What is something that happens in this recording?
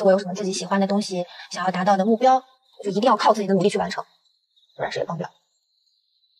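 A young woman speaks calmly and earnestly, close by.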